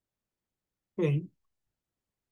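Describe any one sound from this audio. A man says a brief word through a microphone.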